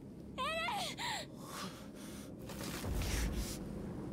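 A young man calls out with strain.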